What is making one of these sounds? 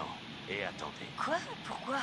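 A young woman asks questions anxiously.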